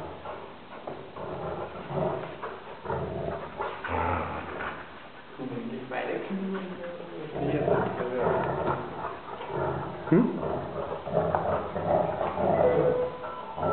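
Two dogs growl playfully while tugging at a rope toy.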